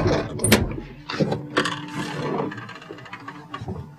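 A door clicks and creaks open.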